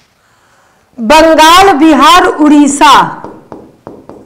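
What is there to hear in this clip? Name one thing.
A young woman speaks loudly and with animation into a nearby microphone.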